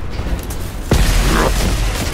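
A heavy explosion booms.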